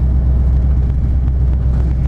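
A truck rumbles past close by.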